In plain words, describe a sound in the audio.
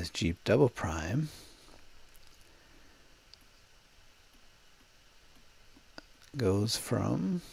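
A man speaks calmly into a close microphone, explaining.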